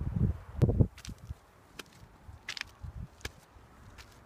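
Footsteps crunch on gravelly stone steps.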